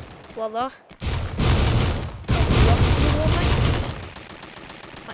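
A stone wall bursts up from the ground with a loud crumbling rumble.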